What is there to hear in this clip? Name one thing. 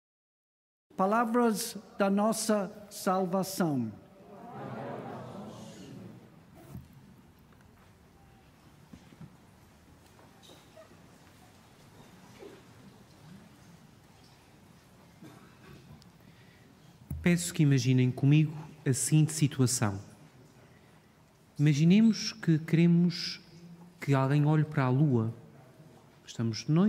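A man chants in a steady voice through a microphone in an echoing hall.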